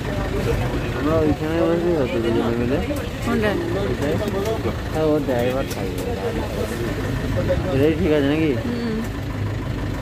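A man talks excitedly nearby.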